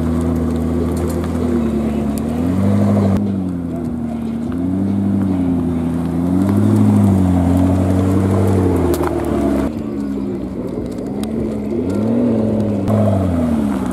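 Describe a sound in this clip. A sports car engine idles with a deep rumble and revs up and down repeatedly.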